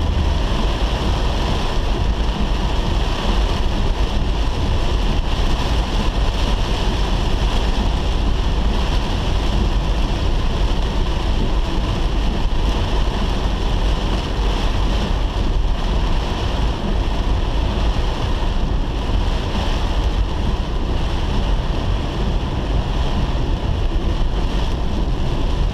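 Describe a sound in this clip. A car engine rumbles low while driving.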